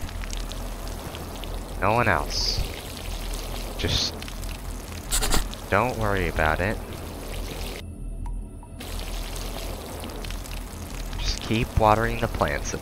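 Water sprays steadily from a garden hose.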